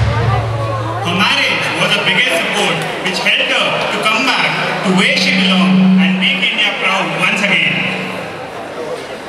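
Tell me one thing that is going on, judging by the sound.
Music plays loudly over loudspeakers in a large echoing hall.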